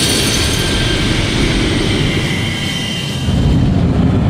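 A magic spell swirls and roars with a rushing, crackling sound.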